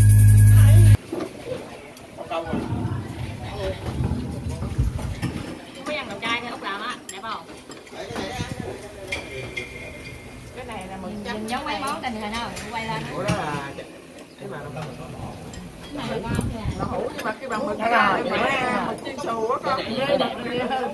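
Chopsticks clink against porcelain bowls.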